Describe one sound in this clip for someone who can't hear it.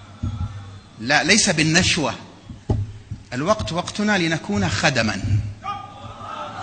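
A man speaks with animation through a microphone and loudspeakers, echoing in a large hall.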